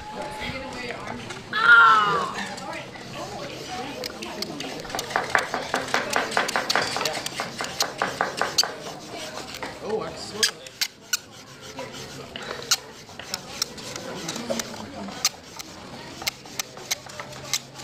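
A wooden stick rubs rapidly back and forth along a groove in a wooden board.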